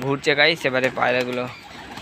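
A pigeon flaps its wings as it takes off.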